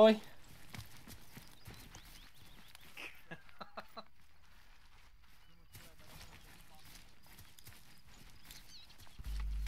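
Footsteps rustle through grass and crunch on dry ground.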